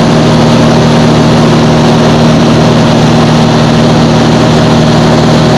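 A single-engine propeller plane drones steadily, heard from inside the cabin.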